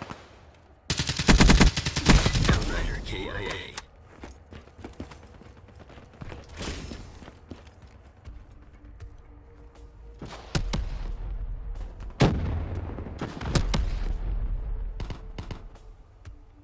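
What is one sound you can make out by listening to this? A rifle fires rapid, loud bursts of gunshots.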